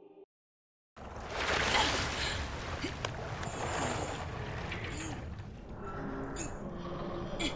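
Water splashes and sloshes around a swimmer.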